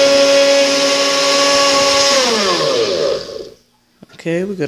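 A blender motor whirs loudly, then winds down and stops.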